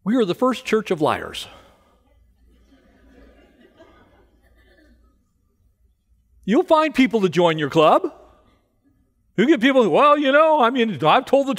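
A middle-aged man speaks with animation through a microphone, with pauses.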